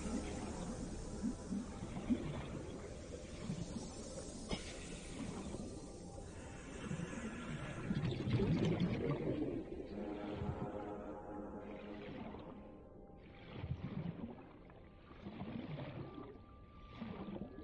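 A small underwater craft's motor hums steadily.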